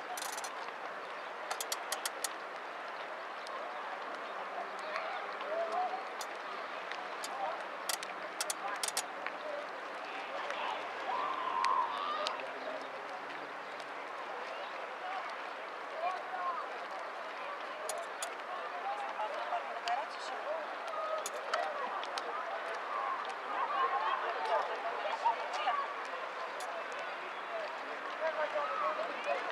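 Small waves lap gently on open water outdoors.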